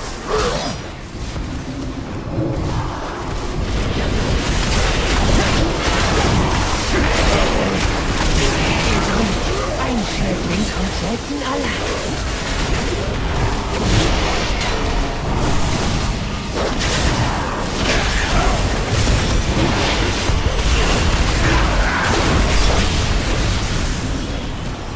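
Magic blasts and combat effects crackle and boom in a busy fight.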